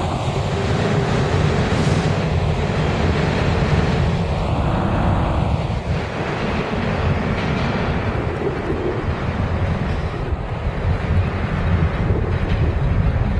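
Steel wheels screech and rattle on the rails.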